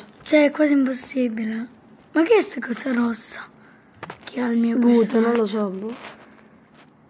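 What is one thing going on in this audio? A child talks with animation close to a microphone.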